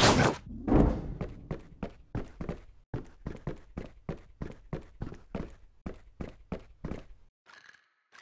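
Quick, light footfalls patter and tap while climbing.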